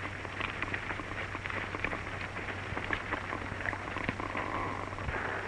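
Horses' hooves clop on dry, stony ground.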